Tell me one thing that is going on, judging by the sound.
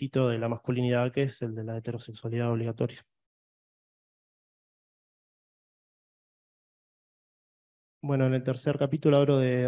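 A man speaks calmly, as if giving a talk, heard through an online call.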